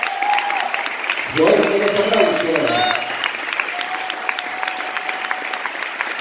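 A crowd claps and applauds steadily.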